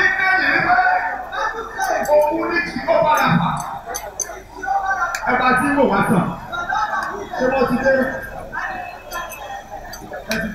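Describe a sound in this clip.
A woman sings loudly through a microphone over loudspeakers.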